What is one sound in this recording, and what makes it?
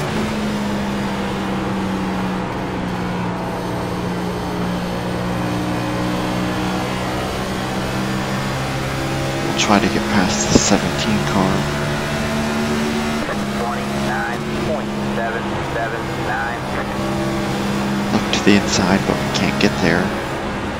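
A racing car engine drones loudly and steadily at high speed.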